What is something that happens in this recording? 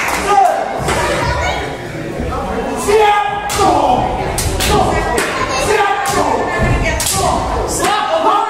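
A crowd of spectators shouts and cheers loudly in an echoing hall.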